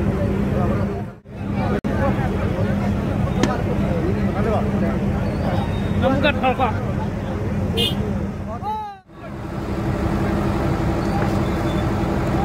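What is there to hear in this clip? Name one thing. A large crowd of men and women chatters outdoors.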